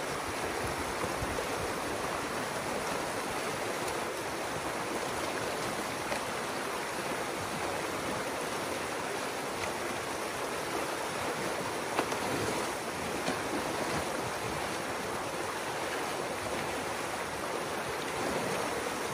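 Water rushes and gurgles steadily down a small stream.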